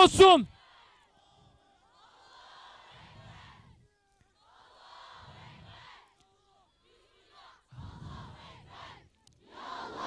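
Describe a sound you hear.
An elderly man speaks forcefully into a microphone, heard through a loudspeaker.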